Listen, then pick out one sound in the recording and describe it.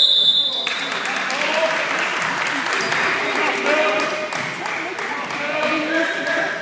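Young players shout and call out in a large echoing gym.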